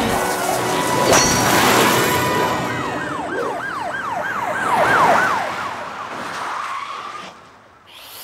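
A car engine roars and revs loudly.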